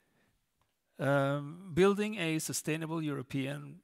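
A man speaks calmly into a headset microphone, heard through loudspeakers in a large hall.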